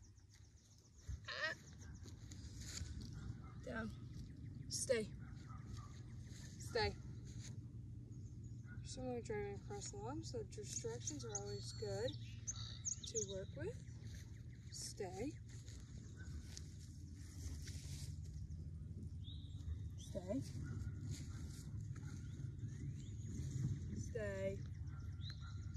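A young woman speaks calmly to a dog close by.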